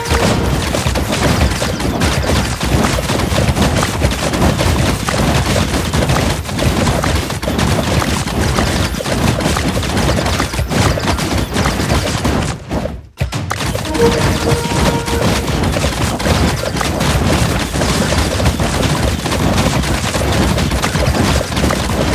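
Cartoon battle sound effects pop and clash rapidly.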